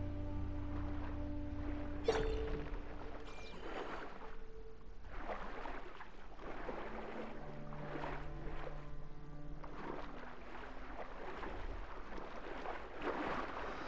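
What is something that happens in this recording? Water swirls and bubbles as a swimmer strokes along underwater, in muffled rhythmic surges.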